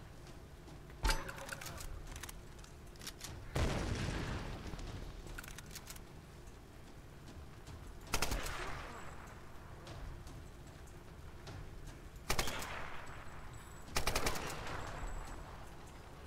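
Gunshots fire in bursts and echo away.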